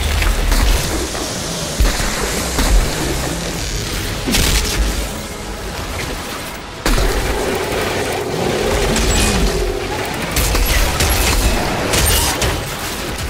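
Gunfire crackles in a video game battle.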